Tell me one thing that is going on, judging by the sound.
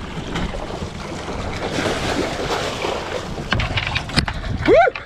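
A fish thrashes and splashes loudly at the water's surface.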